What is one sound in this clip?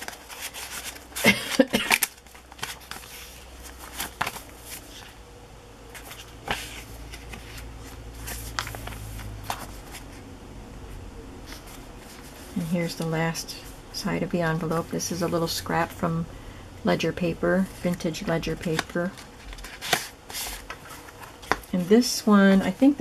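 Stiff paper pages rustle and flap as they are turned by hand.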